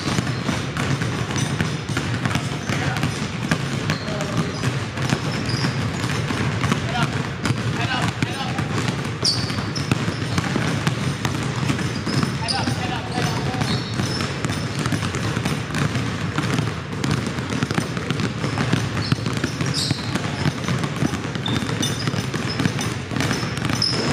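Many basketballs bounce rapidly on a wooden floor in an echoing gym.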